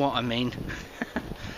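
A man speaks briefly and casually close by, outdoors.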